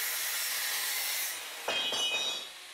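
An angle grinder grinds metal with a loud hiss.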